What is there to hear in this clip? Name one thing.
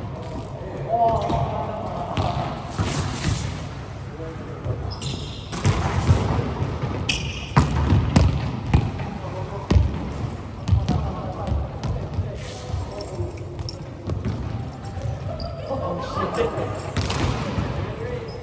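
Young players call out to each other in a large echoing hall.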